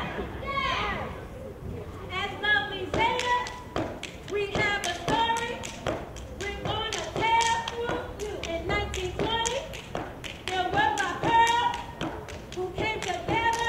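Feet stomp rhythmically on a hard floor.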